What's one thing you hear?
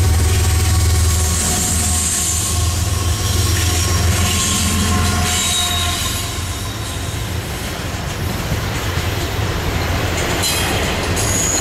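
Freight cars clatter and rattle over the rails.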